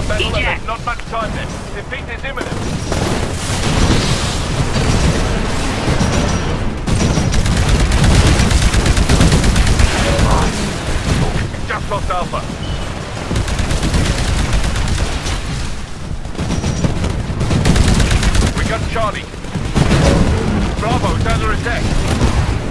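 Rapid gunfire crackles throughout.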